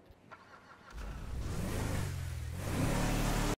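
A truck engine starts and idles with a deep rumble.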